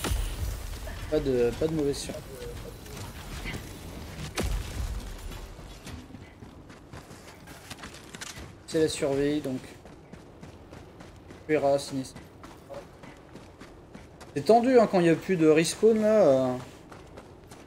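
A man talks with animation into a close microphone, in bursts.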